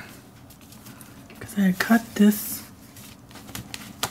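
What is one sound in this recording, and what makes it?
Paper rustles and slides as a hand moves sheets.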